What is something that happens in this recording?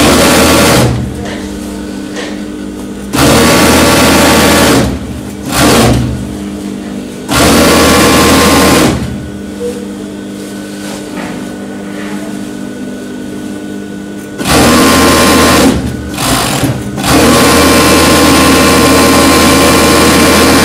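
A sewing machine whirs loudly in bursts, starting and stopping.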